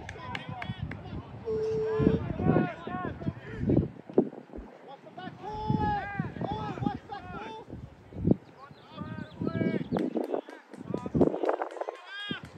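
Spectators shout and cheer outdoors.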